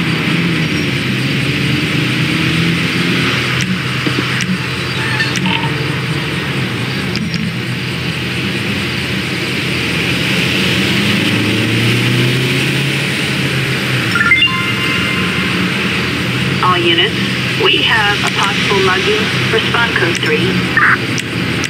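A vehicle engine idles nearby with a low steady hum.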